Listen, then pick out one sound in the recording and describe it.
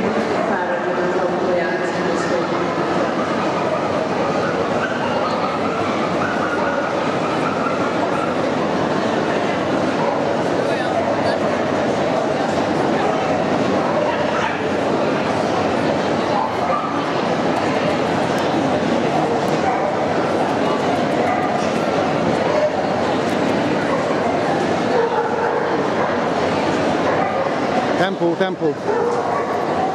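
A large indoor crowd murmurs and chatters in an echoing hall.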